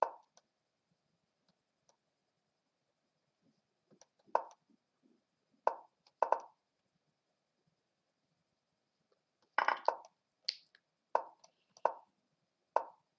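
Short, sharp click sounds play at uneven intervals as chess pieces move.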